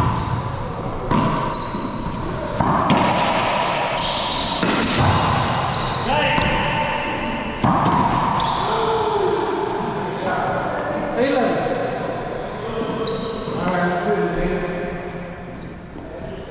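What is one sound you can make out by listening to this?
Men talk and call out to each other.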